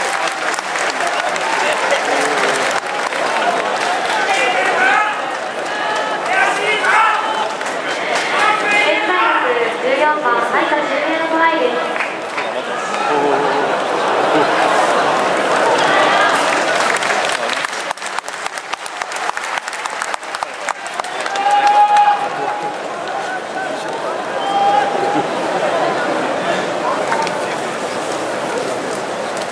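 A scattered crowd of spectators chatters and calls out in an open stadium.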